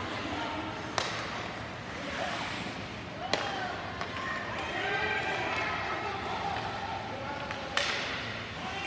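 Hockey sticks crack sharply against a puck.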